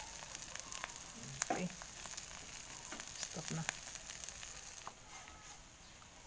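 Food sizzles faintly in a hot pan.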